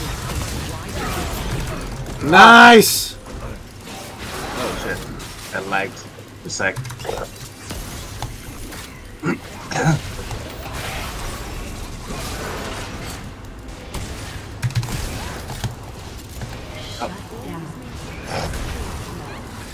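Game sound effects of spells and hits play.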